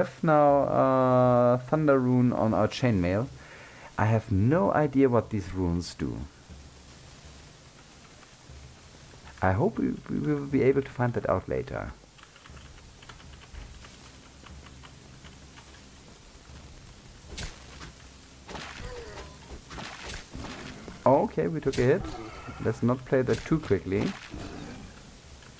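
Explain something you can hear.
A middle-aged man talks calmly and casually into a close microphone.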